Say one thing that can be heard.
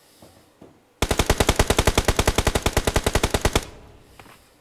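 An automatic rifle fires a rapid, steady burst of shots.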